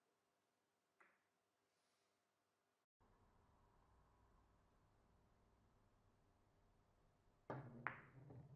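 A cue tip strikes a billiard ball with a sharp tap.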